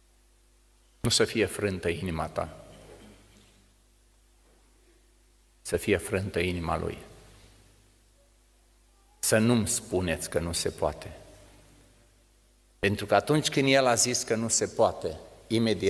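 An elderly man speaks slowly and deliberately through a microphone in a room with some echo, pausing between phrases.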